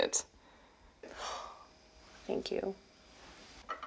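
A woman speaks softly and tearfully close by.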